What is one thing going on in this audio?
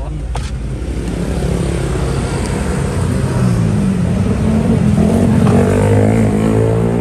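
Motorbike engines rumble and pass by outdoors.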